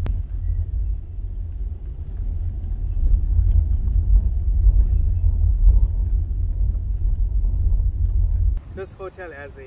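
A car engine rumbles low as the car drives.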